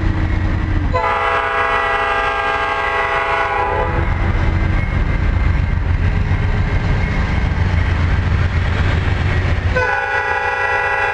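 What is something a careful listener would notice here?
A train horn blares loudly, twice.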